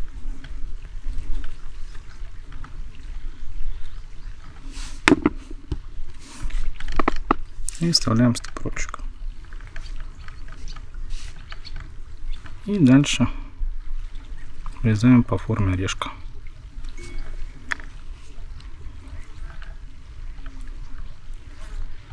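Fingers push a small bait onto a needle with faint, soft rustles.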